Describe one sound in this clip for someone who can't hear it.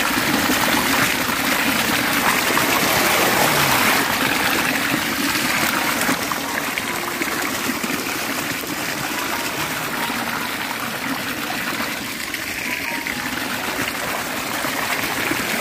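Water rushes and splashes steadily close by.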